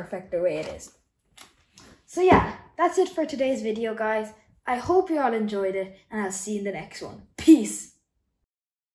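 A young boy talks with animation, close by.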